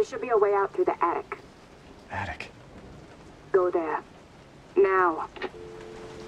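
A woman speaks calmly through a phone line.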